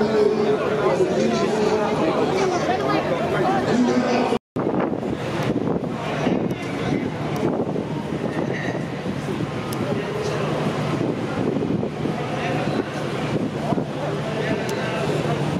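A crowd of men and women chatters in the distance outdoors.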